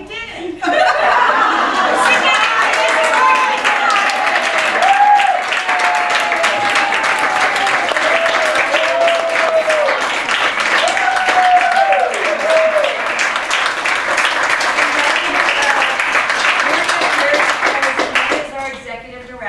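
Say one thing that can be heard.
A crowd applauds with steady clapping.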